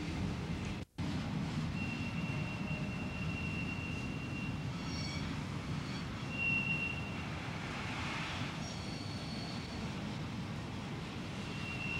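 A freight train rumbles slowly past.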